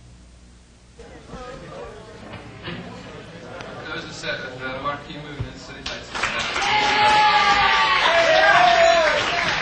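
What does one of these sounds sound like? A rock band plays loud electric guitars.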